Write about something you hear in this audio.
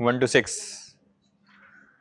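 A man speaks loudly to an audience.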